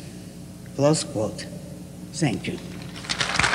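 An elderly woman speaks briefly into a microphone.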